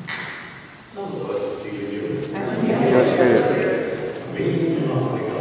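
A crowd sings together in a large echoing hall.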